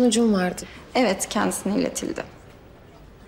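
A young woman replies briefly and calmly.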